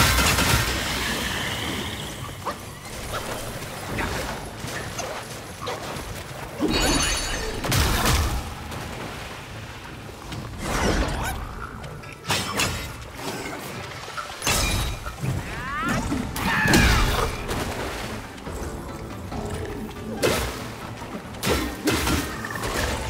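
Blades clash and strike with sharp impacts.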